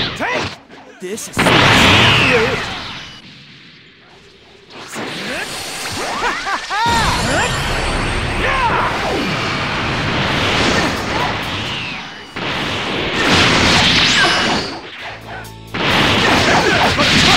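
Energy blasts whoosh and explode.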